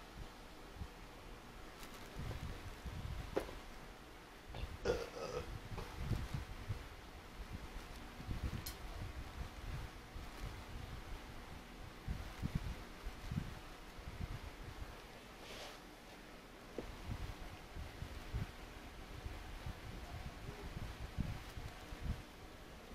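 Close thumps and rustles sound as a man moves about near the microphone.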